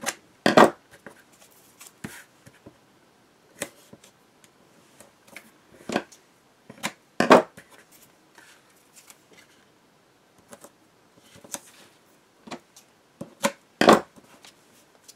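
Sticky tape rips as it is pulled off a roll.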